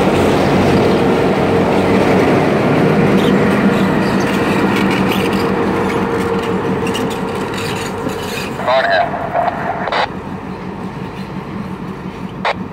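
An EMD GP38-2 diesel locomotive engine rumbles as it rolls away, fading.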